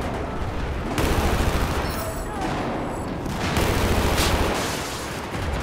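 A rifle fires in rapid bursts with a sharp, echoing crack.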